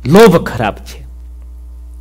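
A man says a few words calmly, close to a microphone.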